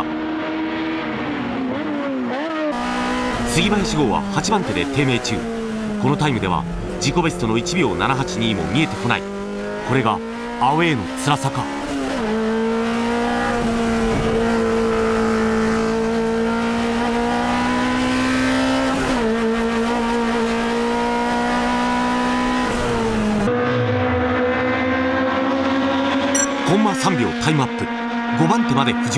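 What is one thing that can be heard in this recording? A race car engine roars loudly and revs up and down.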